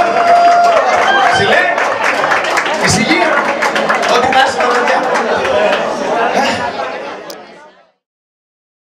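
A band plays lively music with drums and guitar.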